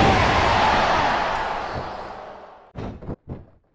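A large crowd roars, then fades away.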